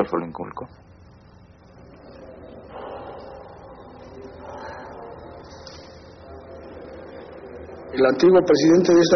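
A man speaks calmly and low, close by.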